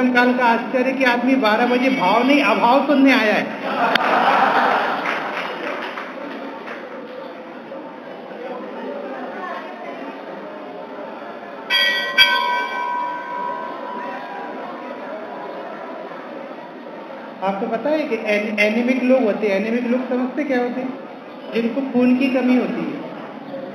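A man speaks steadily into a microphone, heard through a loudspeaker in an echoing room.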